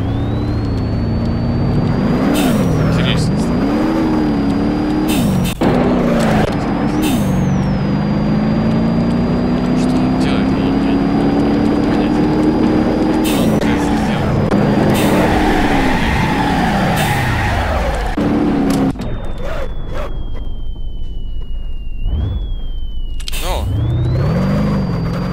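A car engine revs up and down as gears change.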